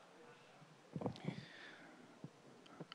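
A second man speaks briefly through a microphone.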